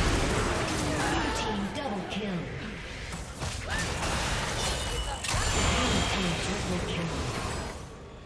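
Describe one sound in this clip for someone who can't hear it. Video game combat effects clash and blast.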